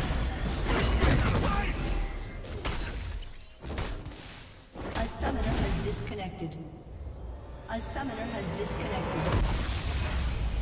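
Game spells and attacks crackle and whoosh in a skirmish.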